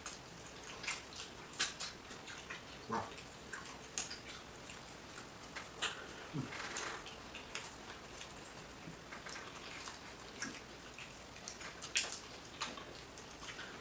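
Fingers squelch in a thick stew in a bowl.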